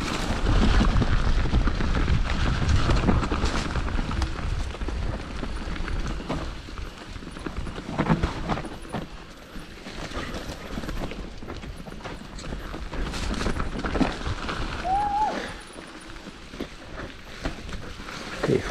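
Mountain bike tyres crunch and rattle over a dirt trail.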